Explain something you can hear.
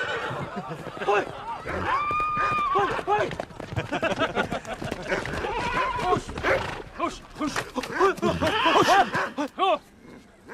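Men shout and cheer loudly outdoors.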